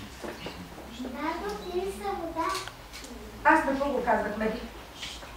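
Young children chatter and answer in high voices.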